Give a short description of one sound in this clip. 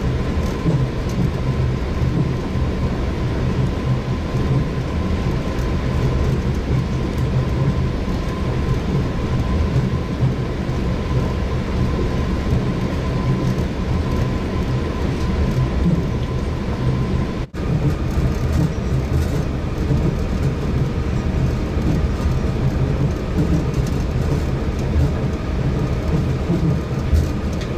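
A monorail train hums and rumbles steadily along its track.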